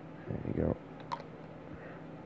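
Small plastic parts click softly as they are handled.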